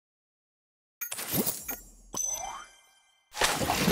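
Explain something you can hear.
A soft chime and click sound.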